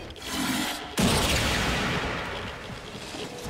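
A loud whooshing energy burst sounds.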